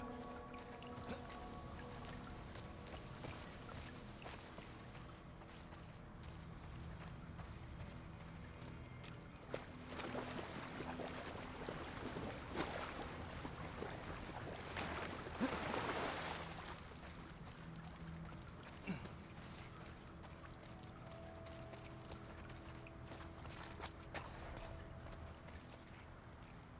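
Footsteps crunch slowly over grass and loose gravel.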